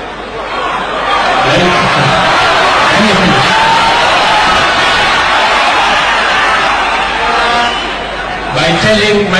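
A large crowd cheers and shouts loudly.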